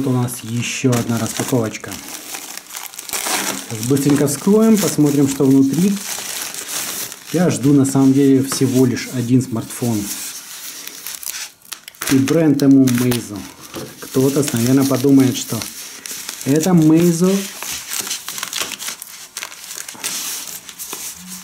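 Plastic packaging rustles and crinkles as hands handle and tear it.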